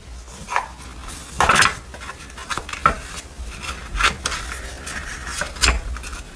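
Pages flutter and riffle as a small notebook is flipped through.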